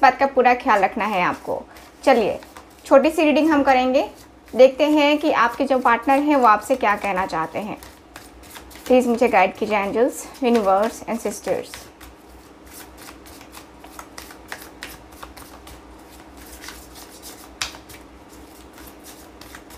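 Playing cards riffle and slap softly as they are shuffled.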